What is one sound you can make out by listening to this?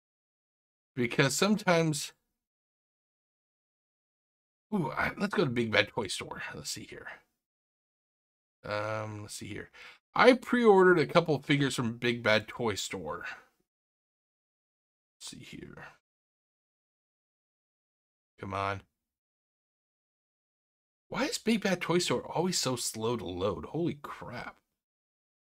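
A man talks casually into a microphone, in short bursts with pauses.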